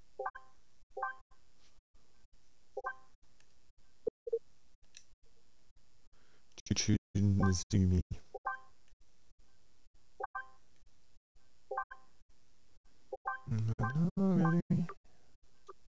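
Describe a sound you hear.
Short chiming menu blips sound now and then as game pages switch.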